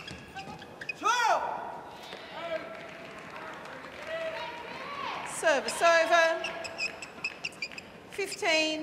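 Shoes squeak loudly on a court floor.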